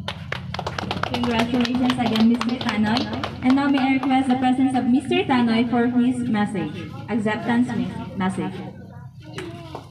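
A young woman sings through a microphone.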